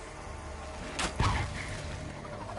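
A loud burst of fire whooshes.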